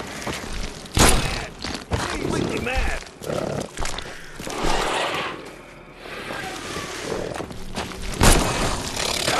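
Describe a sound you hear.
A pistol fires loud, sharp shots.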